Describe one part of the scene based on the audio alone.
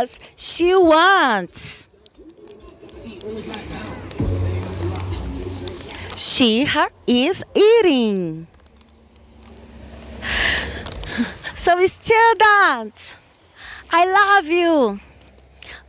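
A woman speaks with animation, in a high sing-song voice, through a microphone.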